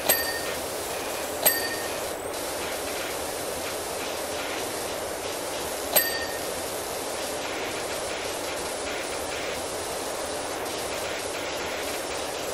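A pressure washer sprays water in a steady hiss.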